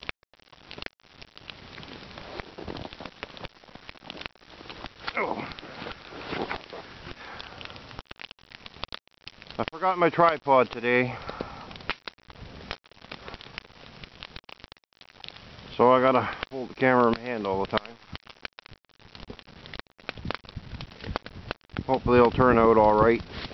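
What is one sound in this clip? A wood fire crackles and pops outdoors.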